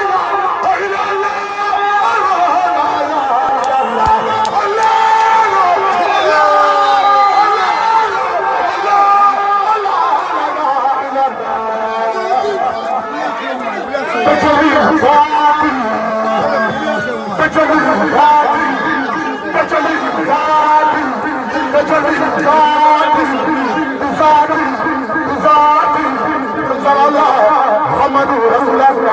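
A young man sings loudly into a microphone through a loudspeaker.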